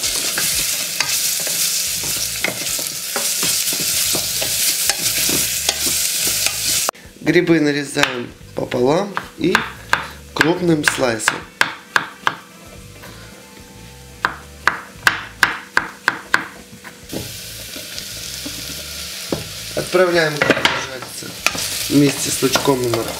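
Food sizzles and hisses in a hot pan.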